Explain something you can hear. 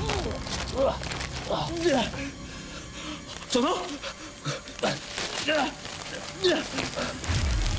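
Plastic wrap rustles and crinkles.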